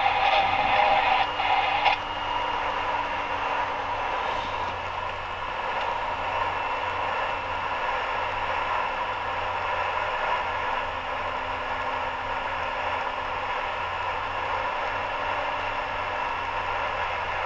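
A car engine hums steadily at highway speed.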